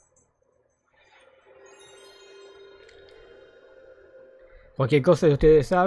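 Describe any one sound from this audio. An electronic startup chime rings out with layered sustained tones.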